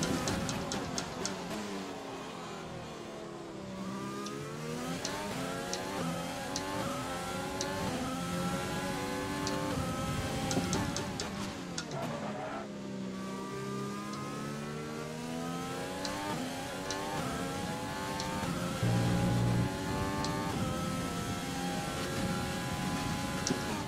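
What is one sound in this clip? A racing car engine screams at high revs, rising and dropping sharply with each gear change.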